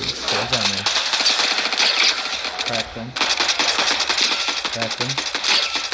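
A rifle fires rapid gunshots.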